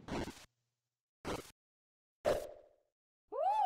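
Short game sound effects thump one after another.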